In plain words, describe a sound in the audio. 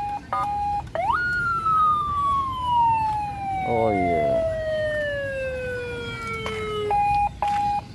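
A motorcycle's alarm sounds a long tone that slowly falls in pitch.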